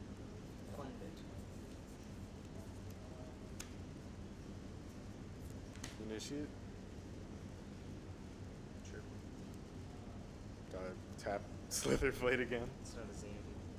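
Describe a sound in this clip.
Playing cards riffle and tap softly on a table.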